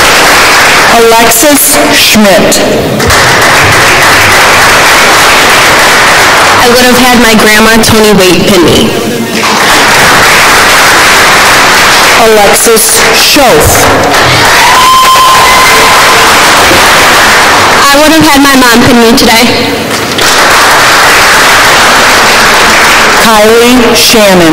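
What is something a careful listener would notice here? A woman announces names over a loudspeaker in a large echoing hall.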